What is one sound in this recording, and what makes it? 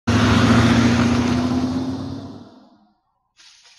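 A car drives past with a rushing engine.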